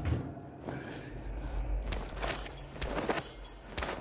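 A metal toolbox lid clanks open.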